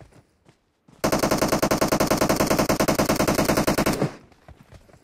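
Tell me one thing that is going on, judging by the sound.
Loud rapid gunfire rattles nearby for a few seconds.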